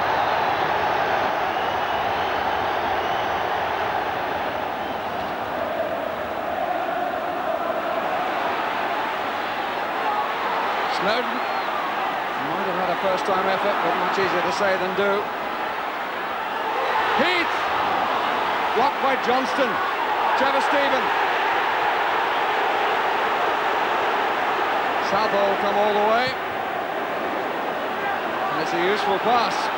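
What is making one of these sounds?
A large crowd roars and chants across an outdoor football stadium.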